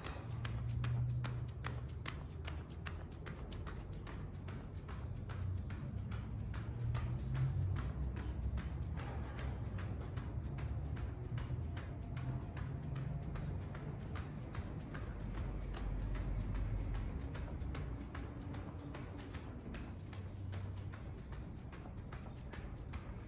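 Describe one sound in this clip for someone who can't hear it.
A jump rope slaps the ground in a quick, steady rhythm.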